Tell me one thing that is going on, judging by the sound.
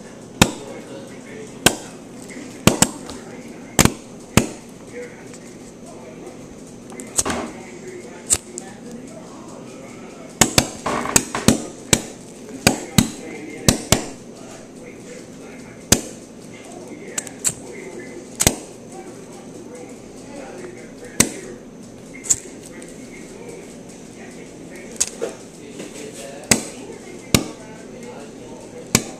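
Firecrackers pop and bang sharply, one after another.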